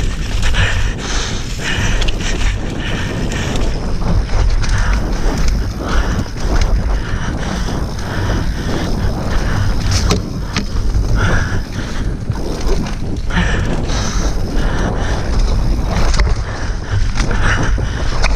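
Bicycle tyres rumble over a bumpy dirt trail.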